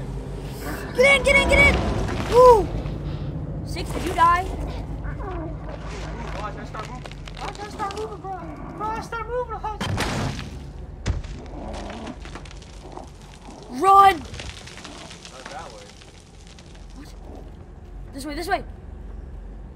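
A young boy talks excitedly into a headset microphone, close by.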